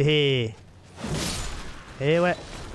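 A blade swishes through the air and strikes with a burst of noise.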